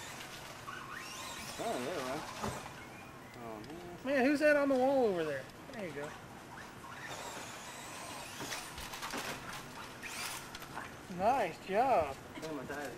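A toy car's small motor whines, rising and falling in pitch.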